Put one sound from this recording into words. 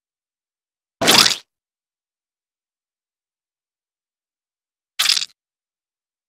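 A short wet squashing splat sounds twice.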